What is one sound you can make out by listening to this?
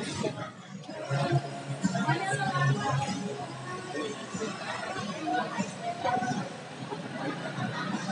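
Several men and women chat at nearby tables.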